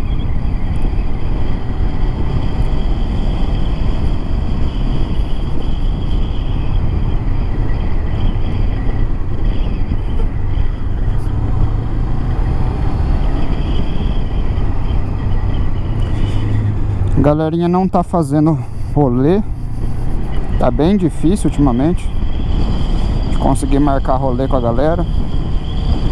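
A motorcycle engine drones and revs up and down through gear changes.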